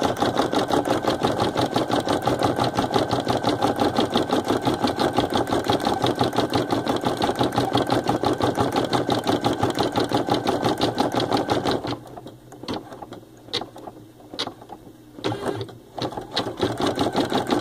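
A sewing machine stitches rapidly with a fast, steady rattle, then slows to a few separate stitches.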